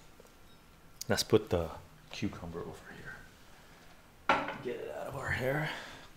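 A middle-aged man speaks calmly up close.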